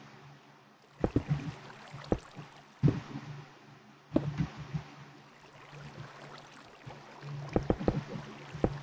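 Stone blocks thud as they are set down one after another.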